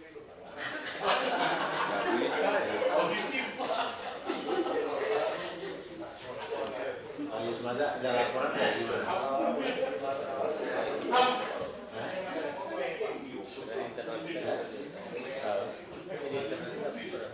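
A group of men laugh and chatter together.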